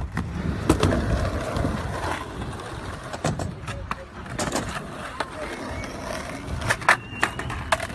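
Skateboard wheels roll over rough pavement with a few sharp clacks.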